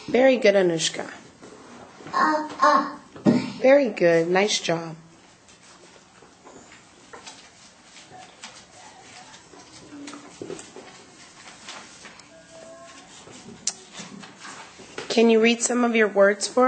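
A young girl speaks slowly into a microphone, reading out with pauses.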